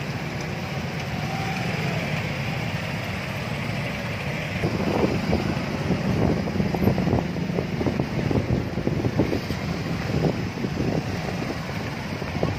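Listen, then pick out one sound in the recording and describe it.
Motorcycle engines rumble and idle close by.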